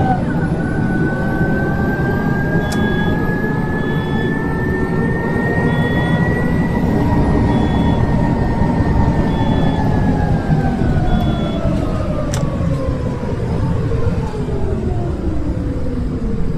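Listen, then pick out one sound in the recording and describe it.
A bus engine drones with a whine that slowly rises in pitch, then falls as the bus slows down.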